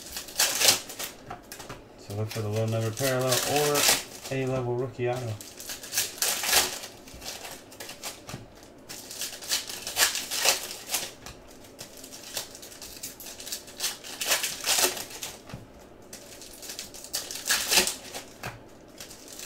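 Foil wrappers crinkle and tear as packs are opened by hand.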